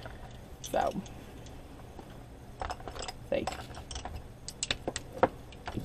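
Pencils clatter against each other in a pencil case.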